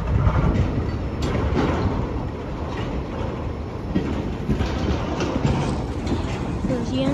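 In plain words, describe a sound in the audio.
A freight train of tank cars rolls past close by, its wheels rumbling and clicking over the rail joints.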